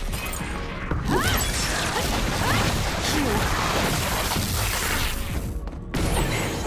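Swords slash and whoosh rapidly.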